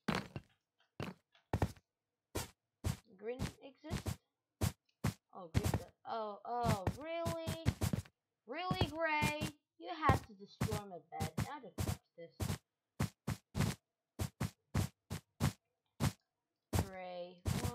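Blocks are placed with quick, soft clicks, one after another.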